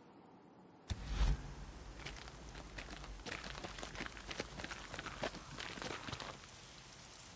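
Footsteps crunch on dry grass and gravel.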